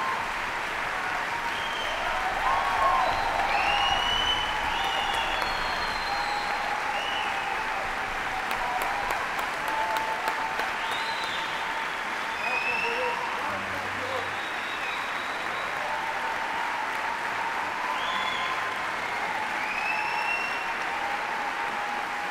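A large orchestra plays in an echoing concert hall.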